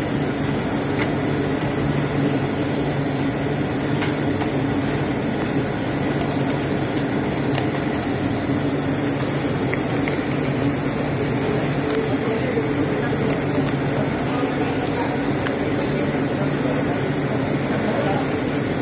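Thin wooden sheets rustle and flap as workers handle them.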